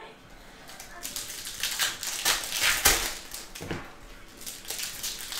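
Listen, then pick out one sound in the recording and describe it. Foil card packs crinkle and tear open in someone's hands.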